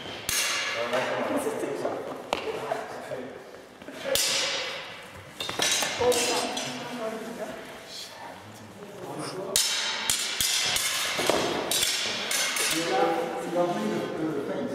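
Blades clash and clatter in sharp metallic clicks.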